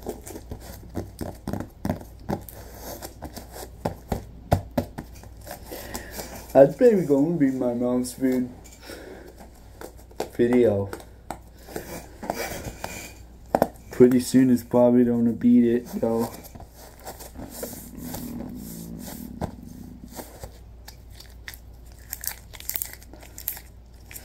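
Gloved hands rub and squeeze a foam ball with soft squeaks and rustles.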